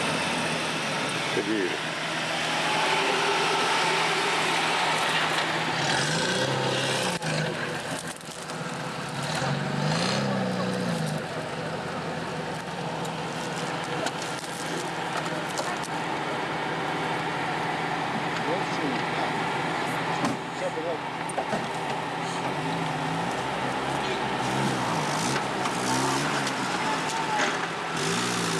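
An off-road vehicle's engine rumbles and revs.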